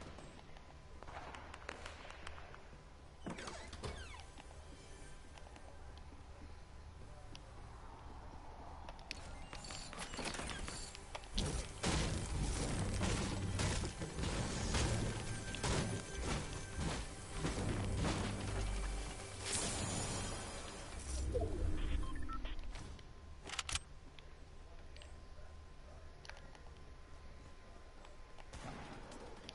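Footsteps thud across a floor.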